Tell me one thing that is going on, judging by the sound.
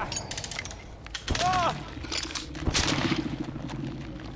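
A metal trap clanks and snaps as it is set.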